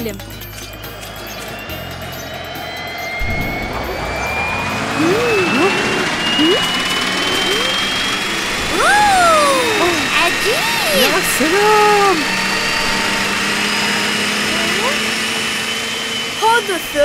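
A drone's propellers whir with a rising whine.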